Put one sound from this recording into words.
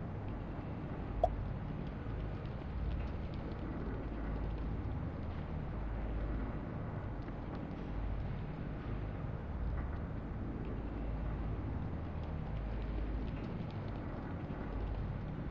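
A low, steady game hum drones throughout.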